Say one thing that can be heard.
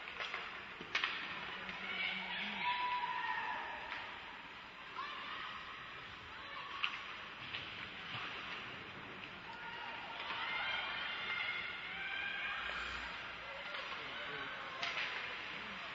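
A hockey stick sharply smacks a puck.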